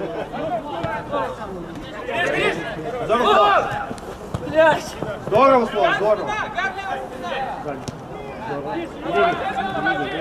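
A ball is kicked on an outdoor pitch.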